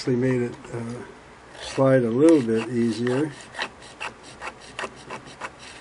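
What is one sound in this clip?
Small metal parts click and tap as they are handled.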